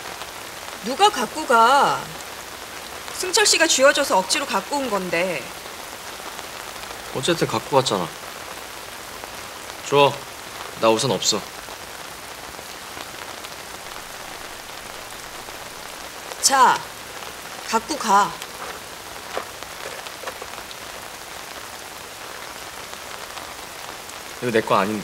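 A young woman speaks tearfully and angrily up close.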